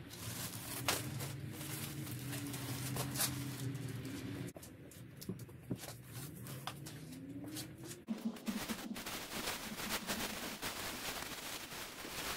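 Items thump and shift about in a car boot.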